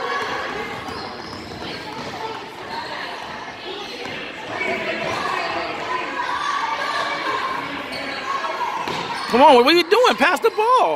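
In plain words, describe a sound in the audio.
Spectators chatter and call out in a large echoing hall.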